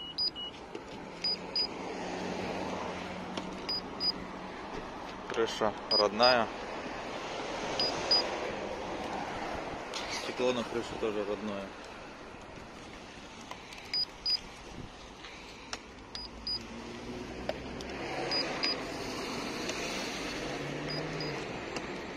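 A handheld gauge beeps in short double chirps, again and again.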